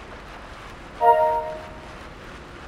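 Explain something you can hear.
A short bright chime rings out once.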